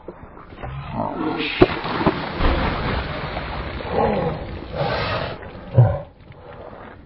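Water splashes and drips.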